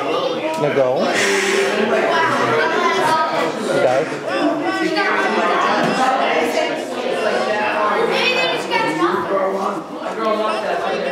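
Children chatter and call out all at once.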